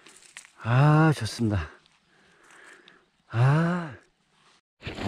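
Dry soil crumbles and rustles as hands pull a root out of the ground.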